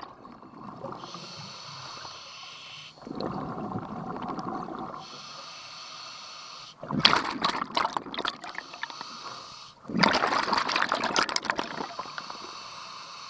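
A diver draws breath through a regulator with a steady, airy hiss.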